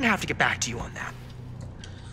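A man speaks in a low voice.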